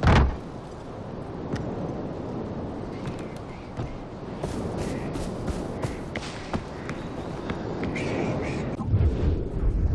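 Footsteps thud on the ground.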